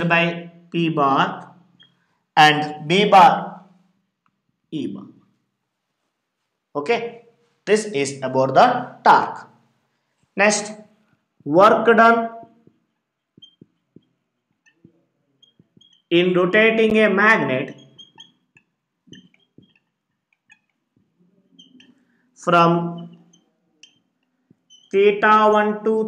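A man lectures calmly in short phrases, close to a microphone.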